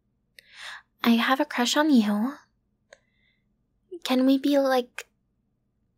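A young woman speaks softly and playfully, close to a microphone.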